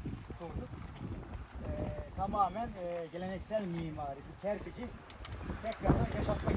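A man speaks to a small group outdoors.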